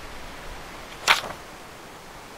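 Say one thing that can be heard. A sharp click sounds once.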